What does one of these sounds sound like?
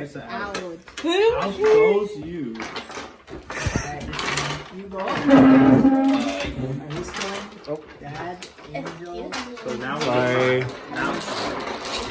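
Dominoes click and clatter against a wooden table.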